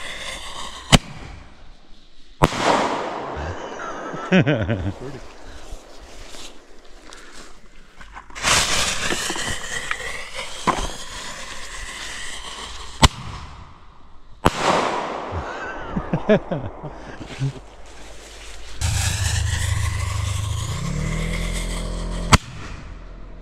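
Fireworks burst with sharp bangs.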